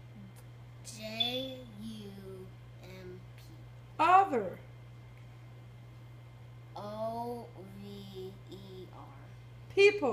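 A young boy talks nearby, with animation.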